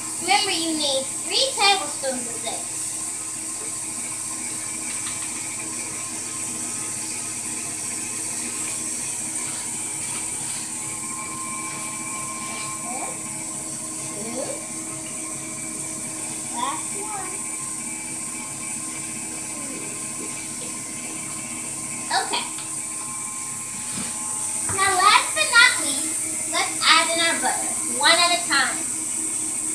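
A young girl talks cheerfully close by.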